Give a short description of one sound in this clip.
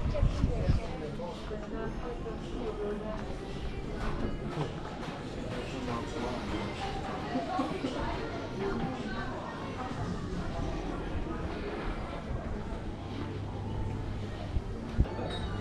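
People chat nearby, outdoors.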